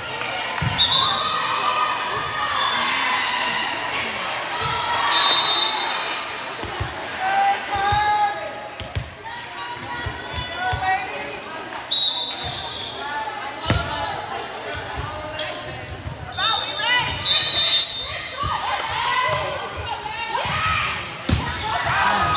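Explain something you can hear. A volleyball thuds as it is hit.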